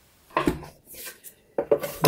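A cardboard box lid slides open.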